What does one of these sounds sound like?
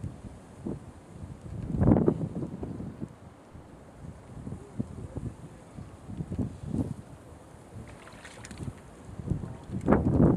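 A fishing reel clicks as it is wound in.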